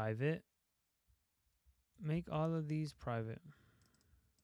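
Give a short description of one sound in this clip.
A young man speaks calmly and close to a microphone, in short bursts.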